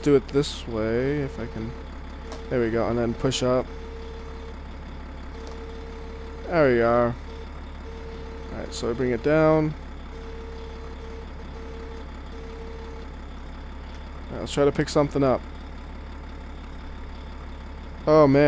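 A wheel loader's diesel engine rumbles steadily.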